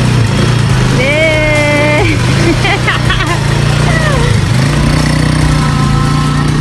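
A small quad bike engine idles with a steady low rumble.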